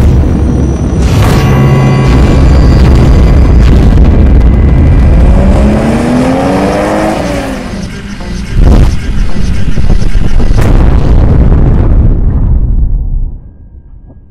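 A loud explosion booms and rumbles.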